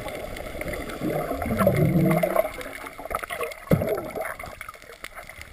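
Water rushes and bubbles around a swimmer who dives in underwater.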